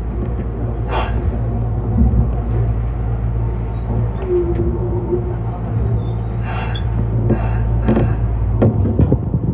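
A train rumbles steadily as it pulls out of a station.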